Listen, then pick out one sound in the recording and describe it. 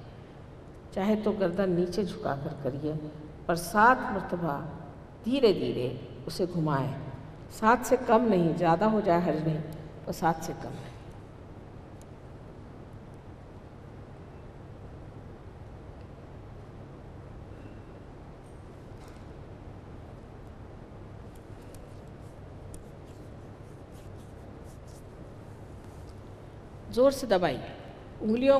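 An elderly woman speaks slowly and with feeling into a microphone, with pauses.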